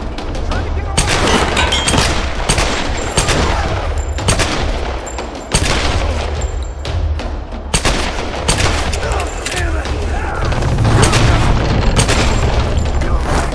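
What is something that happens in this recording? Pistol shots crack in quick bursts.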